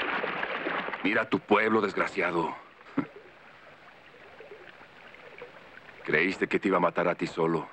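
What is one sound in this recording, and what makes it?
A man speaks firmly at close range.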